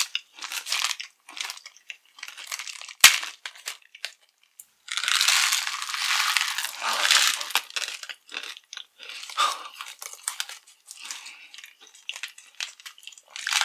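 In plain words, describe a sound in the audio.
Plastic wrapping crinkles close to the microphone.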